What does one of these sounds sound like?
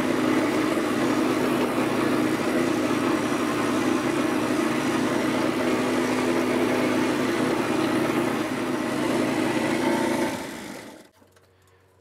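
A small engine runs steadily.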